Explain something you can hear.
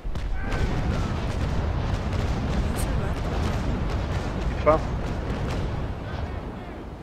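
Cannons boom in a rolling broadside.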